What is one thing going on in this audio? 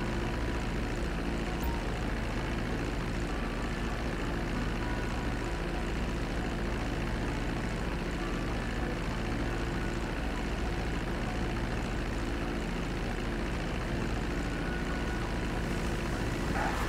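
A propeller plane's engines drone steadily.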